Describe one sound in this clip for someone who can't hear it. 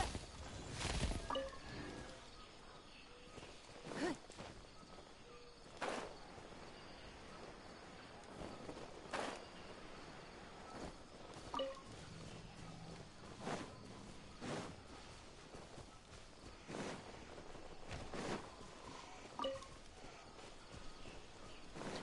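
Soft whooshes sound now and then.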